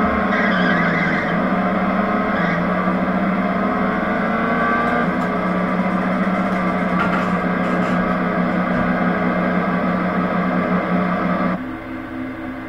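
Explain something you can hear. A race car engine roars at high revs.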